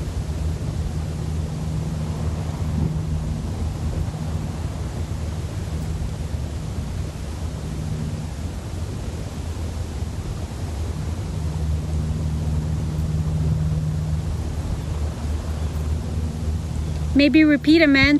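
Wind blows across open ground.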